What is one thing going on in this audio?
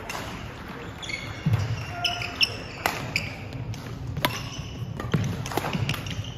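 Sports shoes squeak on a wooden court.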